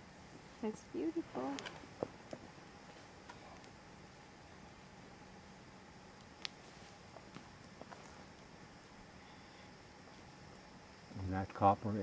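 A campfire crackles and pops now and then.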